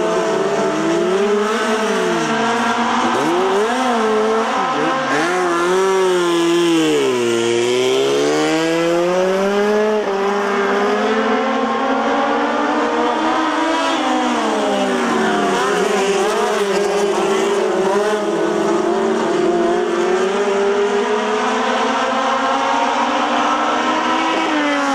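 Several racing car engines roar loudly, revving up and down.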